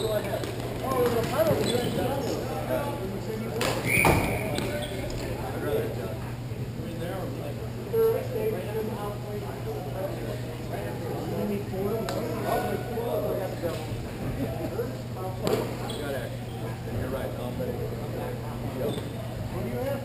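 Skates roll and scrape across a hard floor in a large echoing hall.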